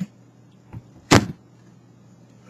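A blender jar clunks down onto its base.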